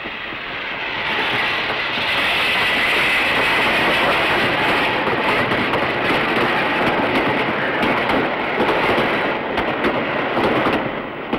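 A steam train chugs past, its wheels clattering on the rails.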